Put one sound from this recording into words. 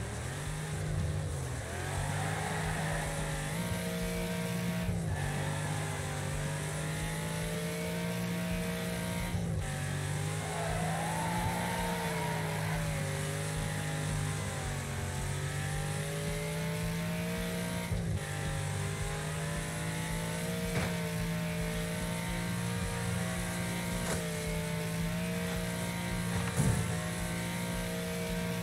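A car engine roars steadily at high revs, dropping briefly as gears change.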